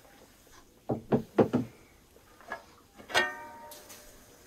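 A metal lid clanks against a large pot.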